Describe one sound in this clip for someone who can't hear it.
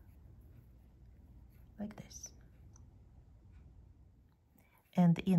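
A crochet hook softly pulls thread through lace.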